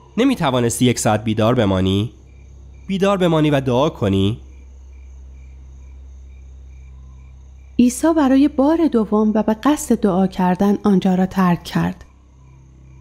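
A man speaks in a low, pleading voice.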